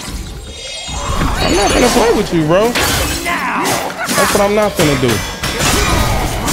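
Swords clash in a fierce fight.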